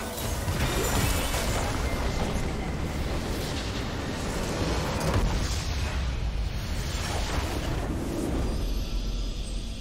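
Game spells and attacks crash and whoosh in a busy fight.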